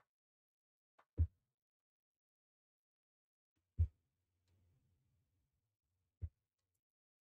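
Hands and feet clank on a metal ladder.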